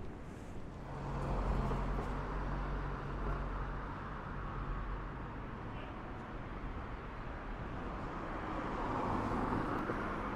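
Traffic rumbles along a city street.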